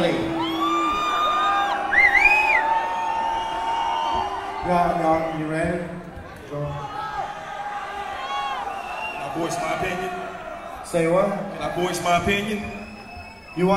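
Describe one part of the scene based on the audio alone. Men rap into microphones, heard through loudspeakers.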